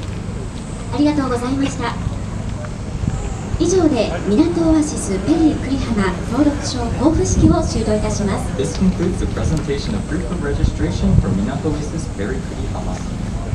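A man speaks formally through a loudspeaker outdoors.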